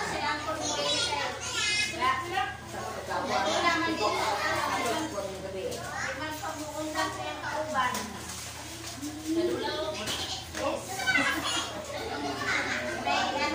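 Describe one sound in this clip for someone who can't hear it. A young child babbles and squeals.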